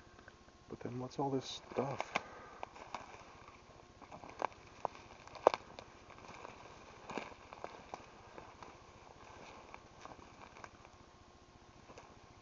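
Footsteps crunch through dry leaves and snapping twigs close by.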